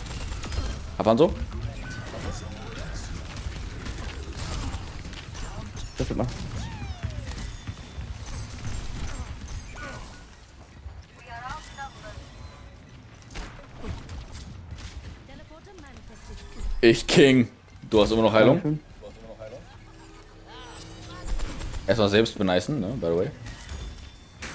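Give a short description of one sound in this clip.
Sci-fi weapons fire with sharp zapping bursts.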